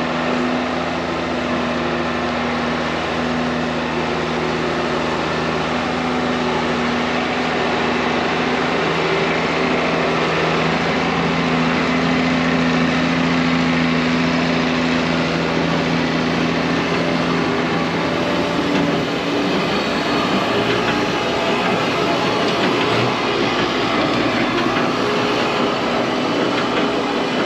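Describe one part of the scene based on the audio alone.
A forage wagon's machinery whirs and clatters.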